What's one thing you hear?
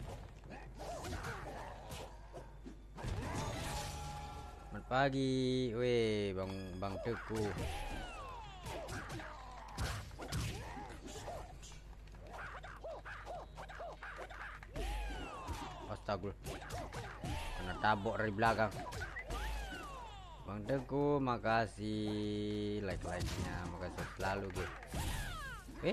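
Punches and kicks land with sharp thuds in a fight game.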